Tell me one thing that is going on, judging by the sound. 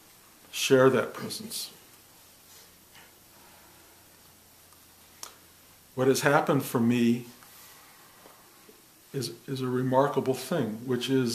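An elderly man speaks calmly and close by, in short bursts with pauses.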